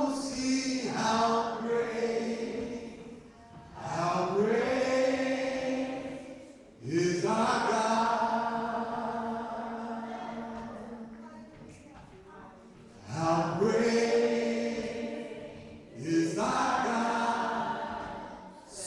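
A man sings with strong, sustained notes through a microphone in a large echoing hall.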